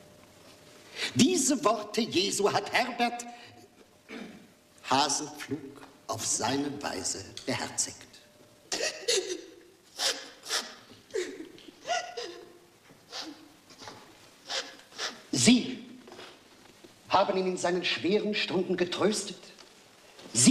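An elderly man preaches in a slow, solemn voice.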